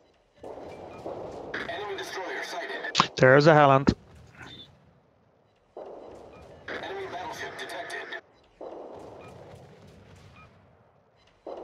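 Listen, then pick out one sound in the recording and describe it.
Anti-aircraft guns fire rapid bursts of shots.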